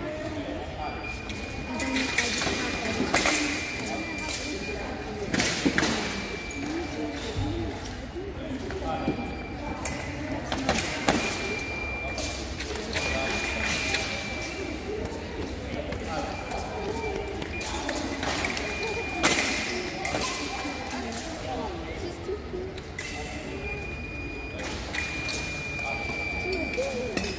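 Fencers' shoes squeak and thump on the floor.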